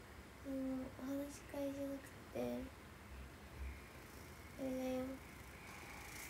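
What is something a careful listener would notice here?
A young woman hums a few soft, short notes close by.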